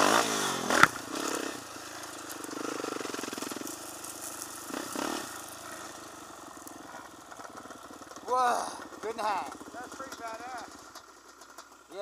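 Quad bike engines idle and rumble nearby.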